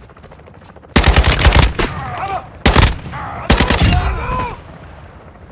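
A rifle fires rapid, loud bursts.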